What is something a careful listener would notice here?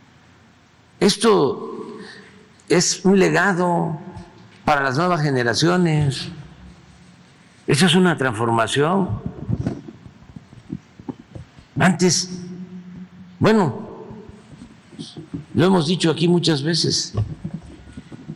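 An elderly man speaks slowly into a microphone, with long pauses.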